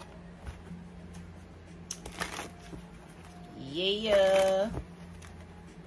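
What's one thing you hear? Playing cards riffle and slap as they are shuffled.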